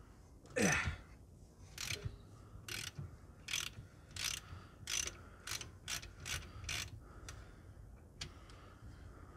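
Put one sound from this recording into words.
A ratchet wrench clicks in short bursts as it turns a bolt.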